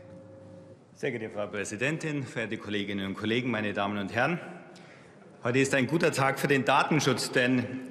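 A middle-aged man speaks calmly into a microphone in a large hall.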